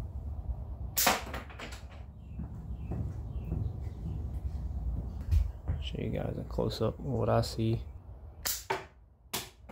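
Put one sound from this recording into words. A small crossbow snaps sharply as it fires.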